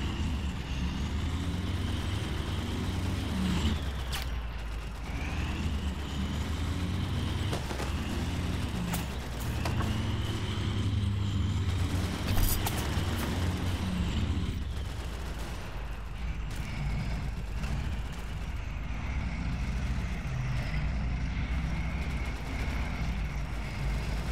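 A tank engine rumbles and its tracks clank steadily.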